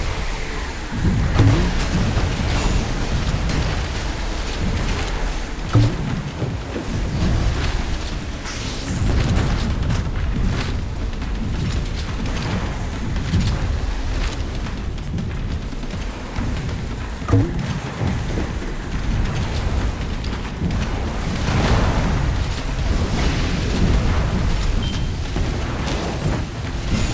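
A boat engine hums steadily as a small boat speeds over water.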